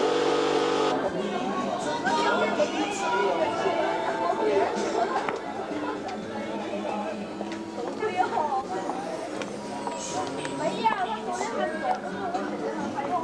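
Women talk nearby outdoors.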